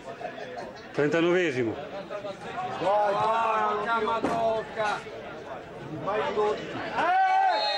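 Football spectators shout and call out from the stands.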